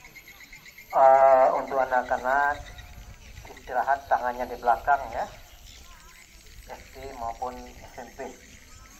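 A man speaks into a microphone over a loudspeaker outdoors, with pauses between phrases.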